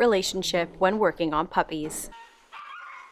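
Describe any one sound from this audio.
A puppy whines and yelps loudly.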